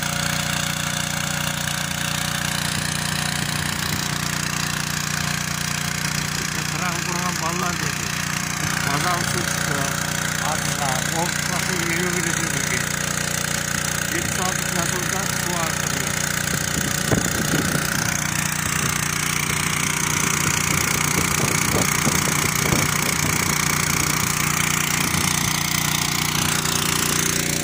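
A small engine pump drones steadily nearby.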